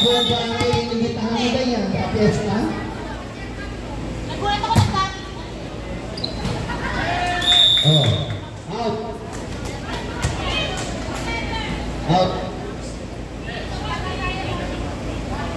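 Young women on a volleyball team shout and cheer to each other in an echoing indoor hall.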